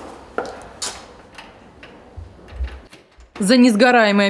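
A key rattles and turns in a door lock.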